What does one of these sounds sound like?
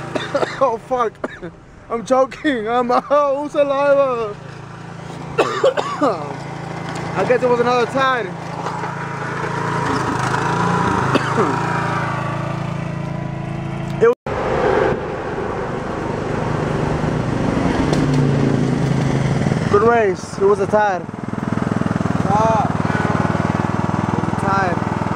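A riding lawn mower engine hums steadily nearby.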